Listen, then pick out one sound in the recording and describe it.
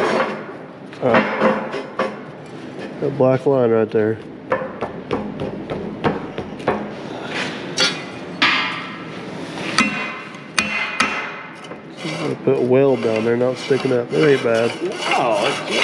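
Metal pieces clank against steel beams.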